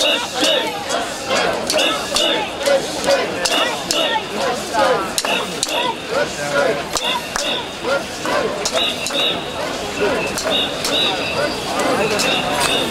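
A large crowd of men and women chants loudly together in rhythm outdoors.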